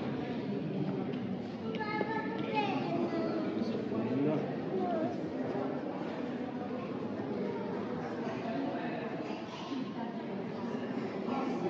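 A crowd of people murmurs and chatters in a large echoing hall.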